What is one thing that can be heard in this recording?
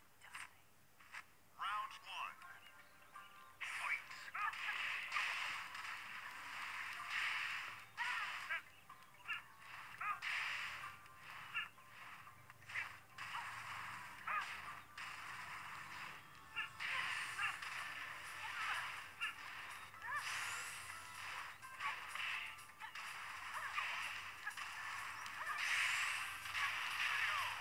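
Fighting game sounds of punches, kicks and shouts play from a small handheld speaker.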